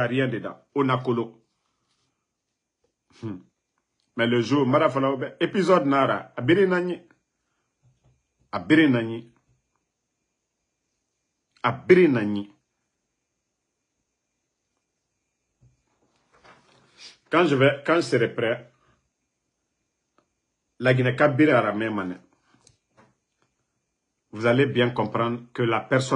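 A man speaks close to a microphone with pauses between his phrases.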